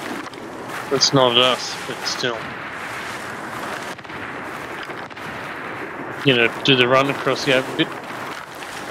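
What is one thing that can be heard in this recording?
A man talks with animation, heard close through a microphone.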